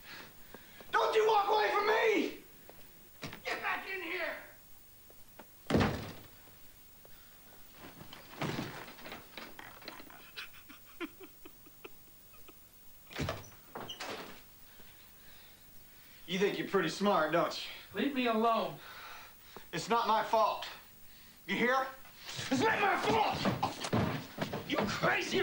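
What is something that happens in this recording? An older man speaks loudly and with animation, close by.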